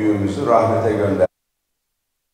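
A middle-aged man speaks into a microphone, addressing a room over a loudspeaker.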